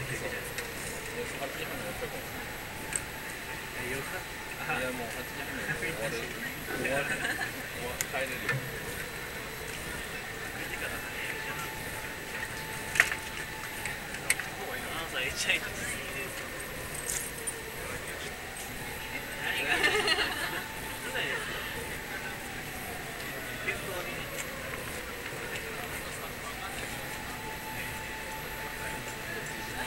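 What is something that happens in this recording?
A crowd murmurs and chatters outdoors.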